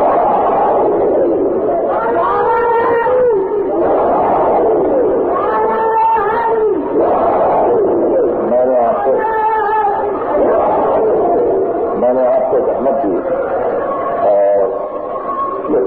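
An older man speaks passionately in a long sermon, heard through a muffled old recording.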